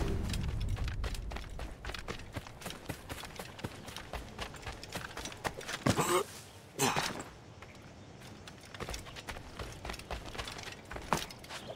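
Footsteps patter quickly over grass and earth.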